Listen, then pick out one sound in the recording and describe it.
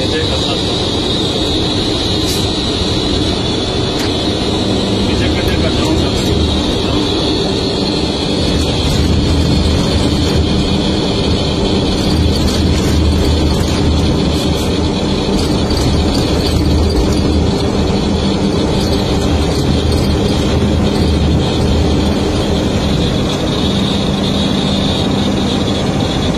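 A heavy truck engine drones steadily from inside the cab.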